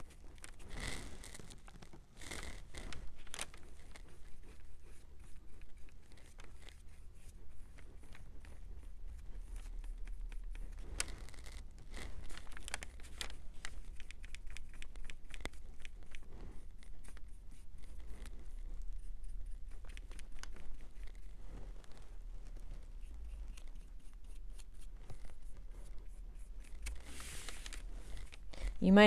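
Small items click and tap lightly on a tabletop.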